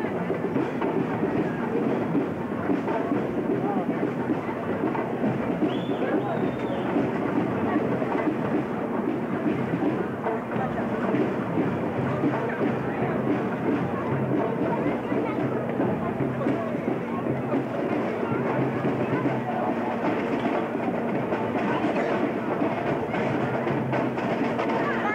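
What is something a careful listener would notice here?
A marching band plays a tune outdoors at a distance.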